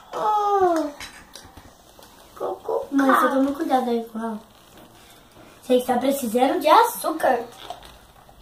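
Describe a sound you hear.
A young girl talks close by in a high voice.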